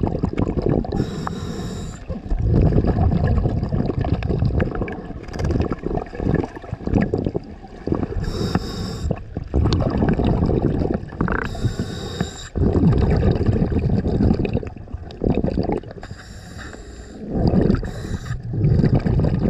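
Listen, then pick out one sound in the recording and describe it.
Air bubbles rush and gurgle in bursts underwater.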